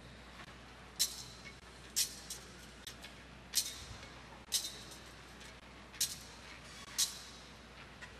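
A censer's chain clinks against its metal bowl.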